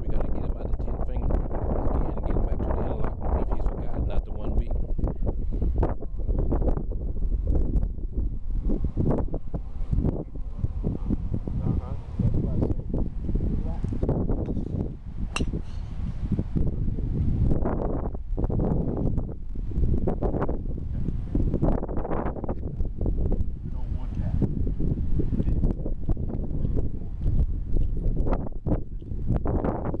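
Wind blusters across an open field.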